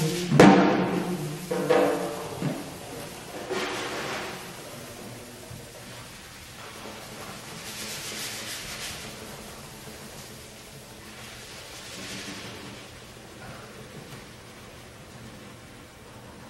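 A drummer plays a kit, with shimmering cymbals.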